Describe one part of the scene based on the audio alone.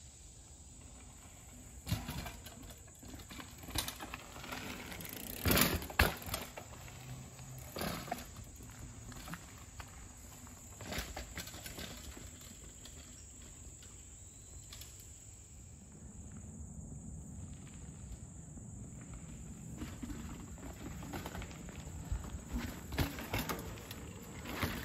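Bicycle tyres crunch over a dirt trail.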